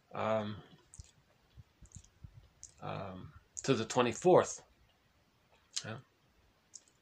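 A middle-aged man speaks calmly and close up, in short phrases with pauses.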